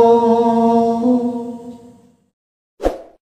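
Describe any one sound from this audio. A man sings a drawn-out note close to a microphone, then fades.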